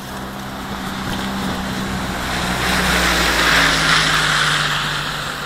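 A truck drives past nearby, growing louder.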